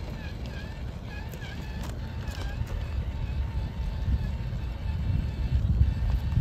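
A small electric motor whirs as a toy truck crawls over rubble.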